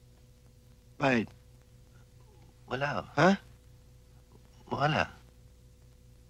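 A young man talks.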